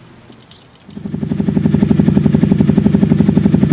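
A motorcycle engine starts and idles with a loud rumble.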